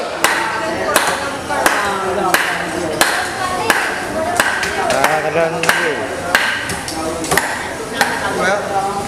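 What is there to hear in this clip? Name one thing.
A heavy blade chops through fish bone in steady, regular blows.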